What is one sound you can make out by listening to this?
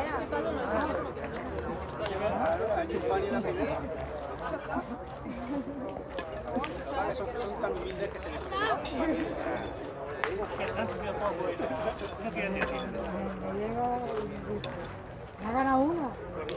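Teenage boys talk and call out to each other outdoors.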